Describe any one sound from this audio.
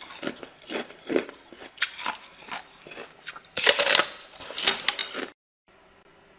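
A young woman bites and chews something crunchy close to a microphone.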